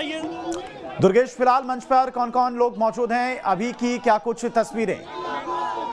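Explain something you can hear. A crowd chants slogans loudly in rhythm.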